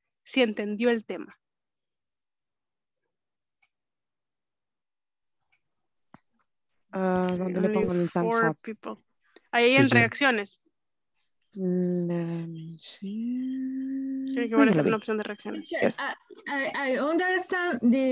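A woman talks over an online call, in short bursts with pauses.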